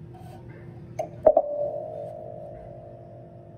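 A mug is set down on a hard surface with a ringing knock.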